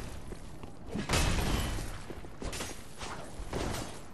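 Metal blades swing and clash.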